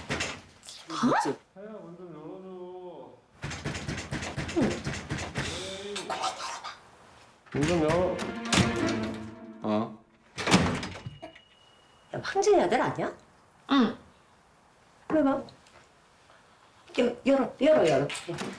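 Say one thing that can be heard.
A middle-aged woman speaks urgently, close by.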